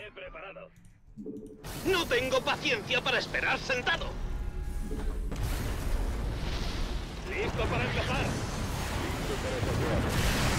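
Gunfire rattles and explosions boom in a battle.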